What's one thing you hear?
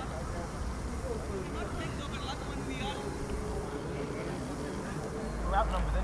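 A man shouts instructions outdoors.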